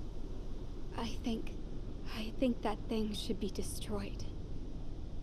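A young woman speaks quietly and hesitantly.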